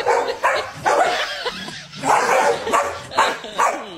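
A dog barks excitedly, close by.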